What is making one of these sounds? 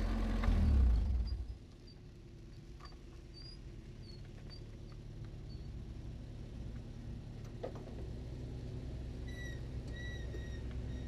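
A race car engine idles with a low, steady rumble close by.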